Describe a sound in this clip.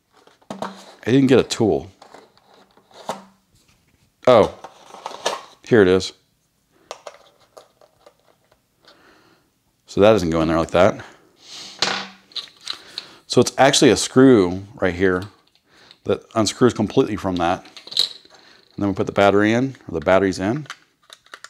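Hard plastic parts click and rattle as hands take them apart.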